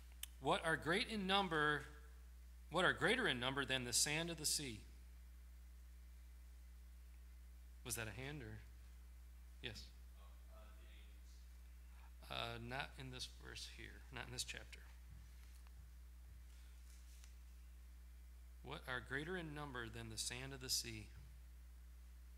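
A middle-aged man speaks calmly into a microphone in a large hall, with pauses between phrases.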